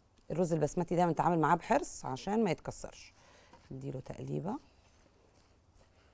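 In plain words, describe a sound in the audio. Dry rice rustles as a gloved hand mixes it.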